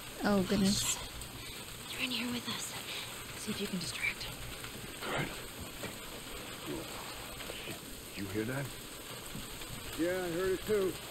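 A young woman talks with animation into a close microphone.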